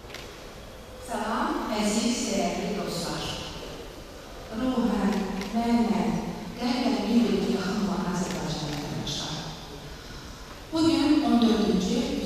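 A young woman sings through a microphone in a large echoing hall.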